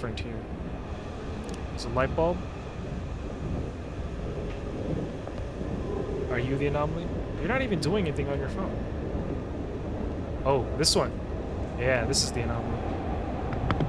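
A train car rumbles and rattles steadily on the tracks.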